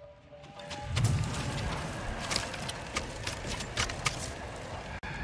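Armour rattles and clinks as a warrior moves.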